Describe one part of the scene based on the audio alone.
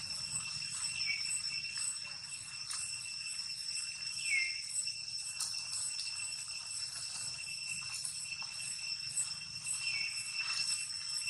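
A baby monkey squeaks in short high cries.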